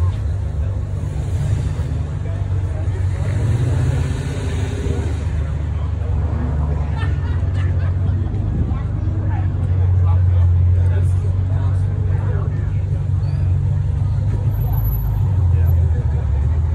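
A big engine idles with a deep, steady rumble close by.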